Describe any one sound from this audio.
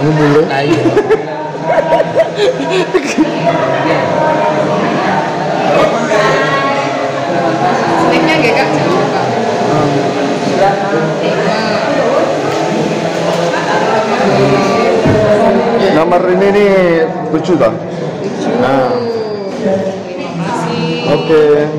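Several men talk over each other close by, with animation.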